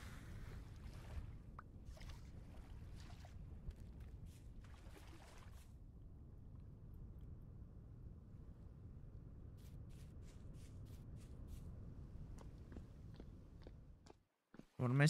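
Footsteps tread softly on grass and dirt.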